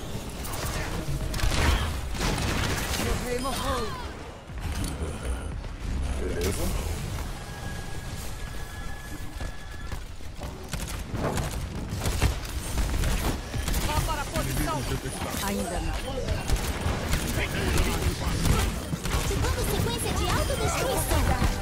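Gunfire and blasts from a game crackle and boom.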